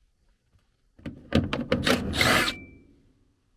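An impact driver whirs and rattles in a short burst.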